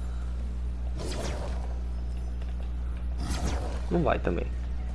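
A magical blast whooshes and crackles in bursts.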